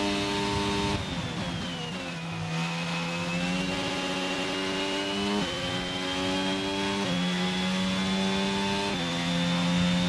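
A racing car's gears shift with sharp jumps in engine pitch.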